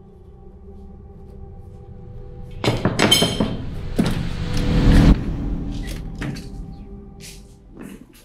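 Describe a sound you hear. Heels click on a hard floor as a woman walks.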